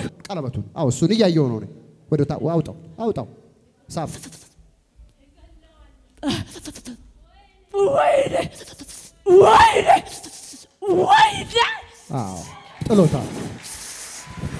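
A woman cries out loudly into a microphone.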